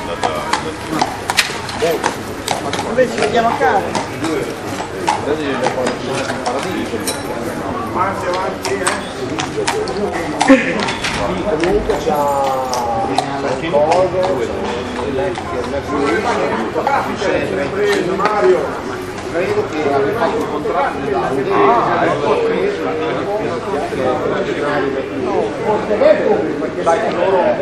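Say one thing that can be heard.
Several men chat nearby in a lively crowd.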